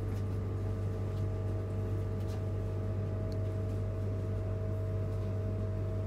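A train's motor hums with a steady low drone.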